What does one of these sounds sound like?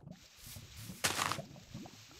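Dirt crunches as a block is dug out in a video game.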